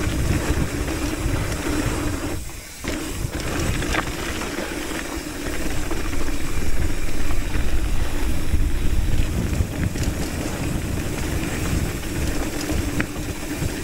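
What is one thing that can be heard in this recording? Mountain bike tyres crunch and roll over a rocky dirt trail downhill.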